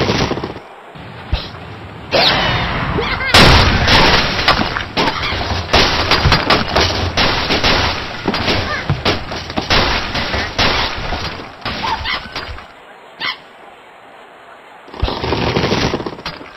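A slingshot twangs as it launches.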